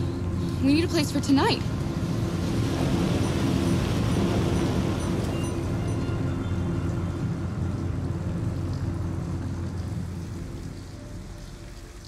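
A large truck engine rumbles nearby.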